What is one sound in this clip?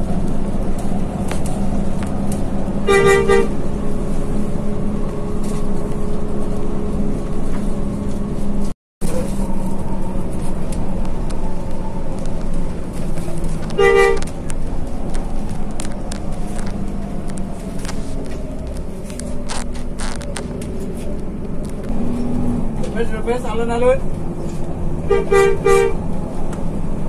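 A large vehicle's engine rumbles steadily while driving.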